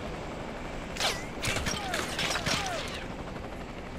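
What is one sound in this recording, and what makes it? Rifle shots crack in a quick burst.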